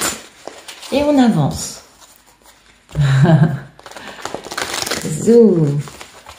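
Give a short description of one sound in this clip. Playing cards riffle and flutter together.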